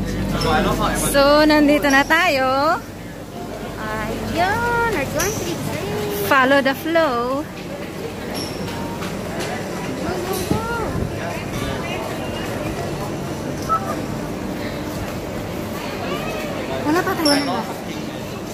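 A woman speaks loudly and excitedly close by.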